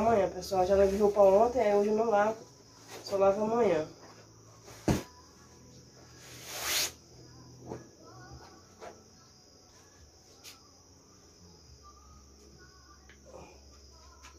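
Fabric rustles as a pillowcase is shaken out.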